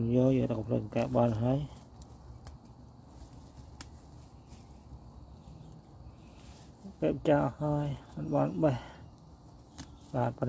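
Leafy plants rustle softly as a hand brushes and picks through them.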